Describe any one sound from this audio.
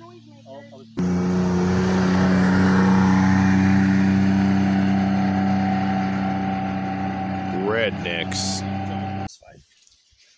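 A utility vehicle's engine drones steadily as it drives away on a gravel road.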